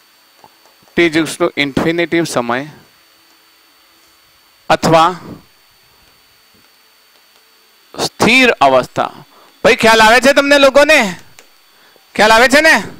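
A man speaks clearly into a close microphone, in short bursts with pauses.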